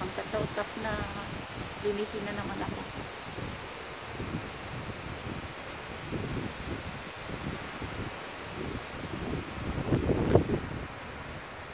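Wind blows outdoors and rustles trees.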